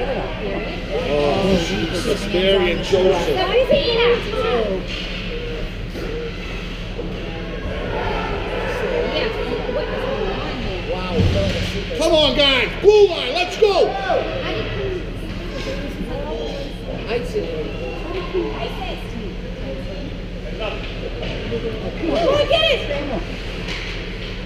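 Young players shout and call out in the distance, echoing.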